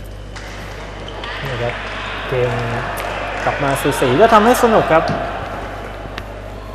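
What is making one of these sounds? Young men shout together in an echoing hall.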